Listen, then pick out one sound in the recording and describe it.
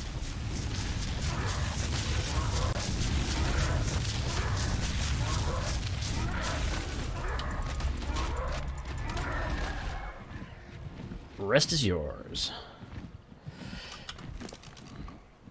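Large leathery wings flap steadily.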